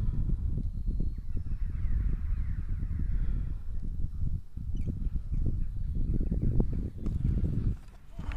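Wind buffets the microphone with a low, gusty rumble outdoors.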